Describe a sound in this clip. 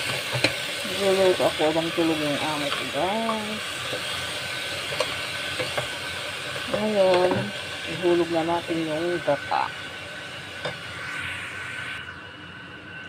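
Food sizzles in a hot pot.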